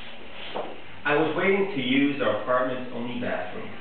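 A young man reads aloud calmly into a microphone.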